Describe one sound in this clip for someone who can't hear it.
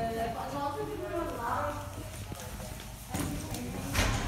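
Lift doors slide open.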